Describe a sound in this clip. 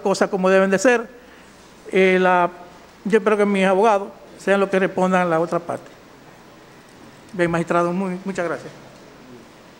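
An older man speaks forcefully into a microphone in a large room.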